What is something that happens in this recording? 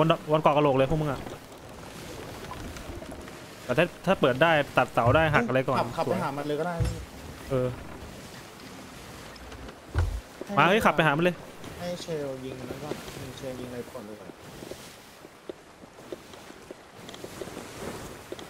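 Waves roll and splash against a wooden ship.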